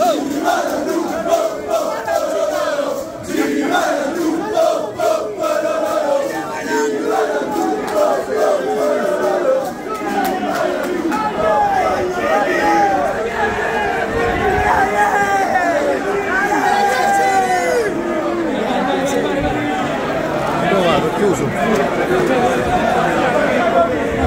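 A large crowd of men and women shouts and cheers loudly nearby.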